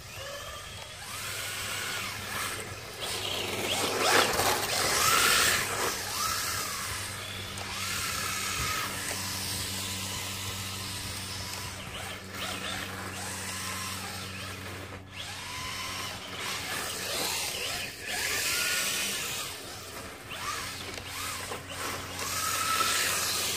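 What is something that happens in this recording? A small electric motor whines, rising and falling in pitch as a toy car speeds around and turns.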